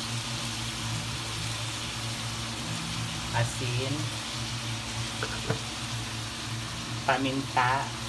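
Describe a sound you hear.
Meat sizzles steadily in a hot pan.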